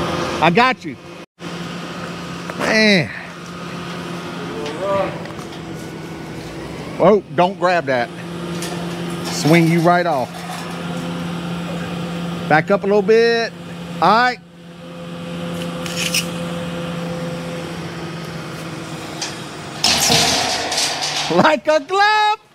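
An excavator engine idles steadily nearby.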